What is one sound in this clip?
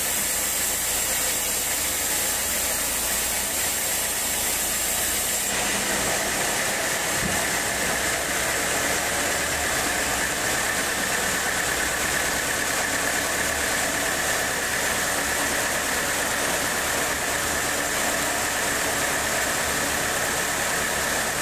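A sawmill engine drones steadily.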